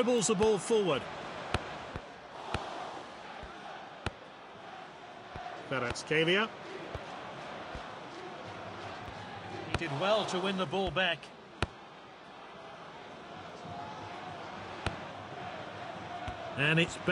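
A stadium crowd murmurs in the background.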